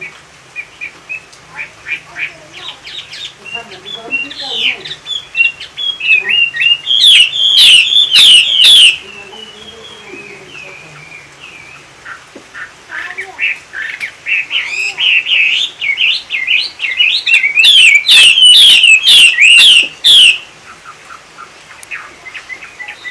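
A caged bird sings loud, rapid warbling trills in bursts close by.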